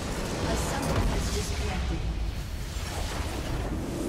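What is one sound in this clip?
A structure explodes with a loud boom.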